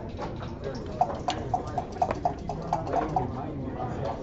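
Checkers click as they are moved on a board.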